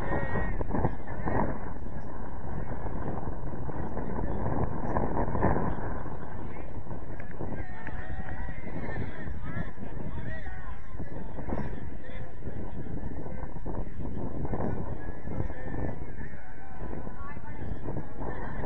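Young men shout to each other in the distance across an open field.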